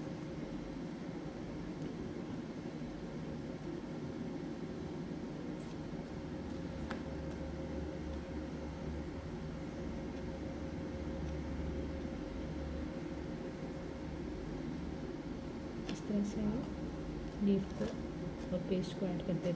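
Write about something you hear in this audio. A palette knife scrapes and taps softly against a board.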